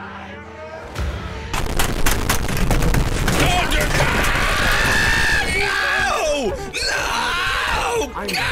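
Several young men scream and shout in excitement through microphones.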